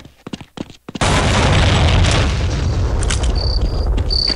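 An explosion booms and rumbles, echoing in a tunnel.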